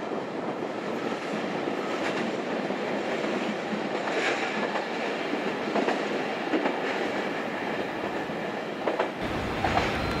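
A freight train rumbles slowly along the tracks.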